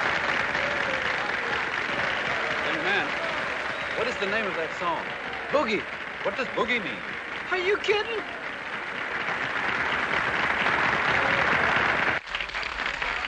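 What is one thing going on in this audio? A crowd applauds and cheers in a large room.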